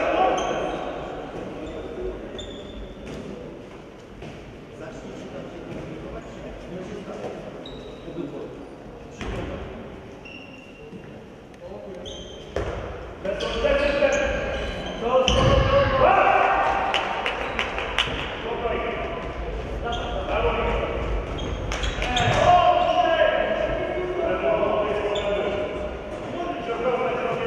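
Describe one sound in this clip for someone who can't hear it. Shoes squeak and thud on a gym floor, echoing in a large hall.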